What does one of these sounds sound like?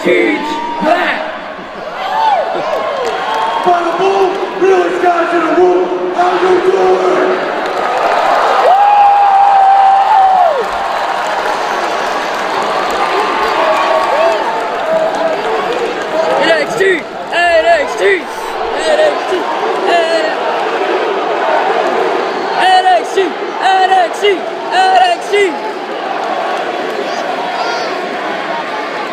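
A large crowd cheers and shouts in a big echoing arena.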